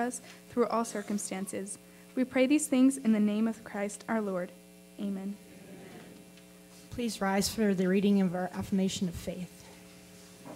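A young woman reads aloud calmly through a microphone.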